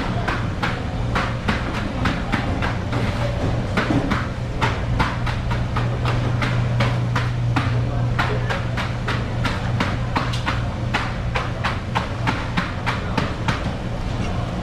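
A knife taps and slices against a wooden board.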